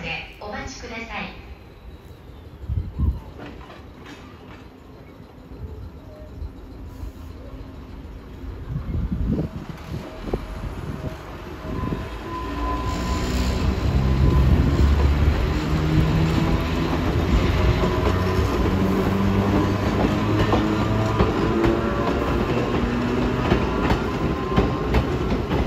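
A train rumbles past nearby, growing louder.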